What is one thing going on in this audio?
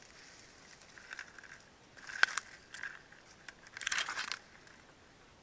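Leaves rustle and brush close by.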